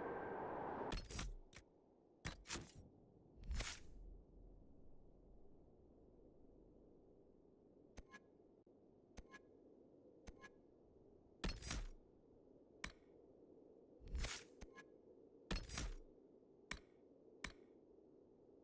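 Menu clicks and whooshes sound as options are browsed.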